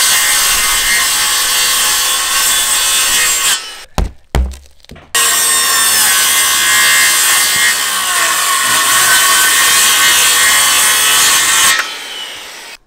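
A circular saw whines as it cuts through roof sheathing.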